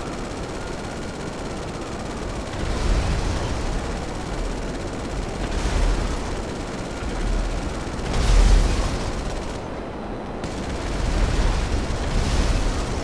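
A jet engine roars steadily, with surging gusts of rushing air.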